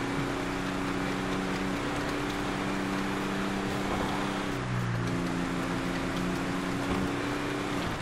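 A truck engine rumbles steadily, shifting pitch as it drives.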